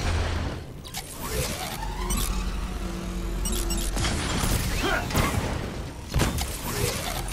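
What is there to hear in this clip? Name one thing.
Sharp blasts and impacts ring out now and then.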